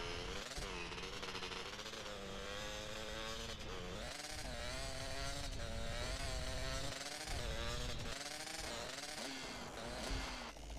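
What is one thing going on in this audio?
A quad bike engine hums and revs up and down.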